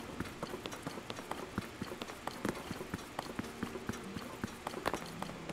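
Footsteps patter quickly on a hard stone floor.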